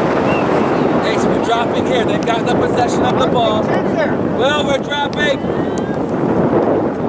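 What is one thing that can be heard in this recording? Young players shout to each other across the field.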